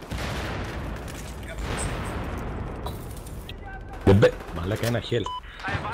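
A gun is reloaded with metallic clicks and clacks.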